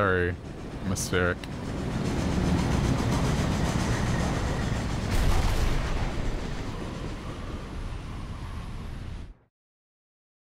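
An airship engine rumbles loudly through a roaring wind.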